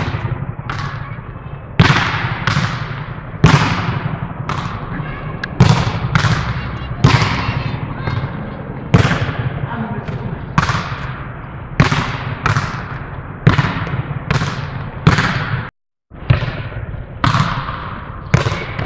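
A ball smacks hard against a wall again and again, echoing loudly.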